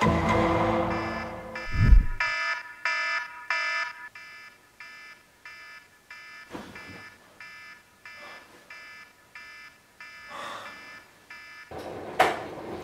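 A smartphone alarm chimes a repeating tone.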